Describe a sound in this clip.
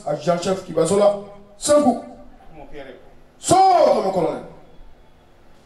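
A man shouts military commands loudly.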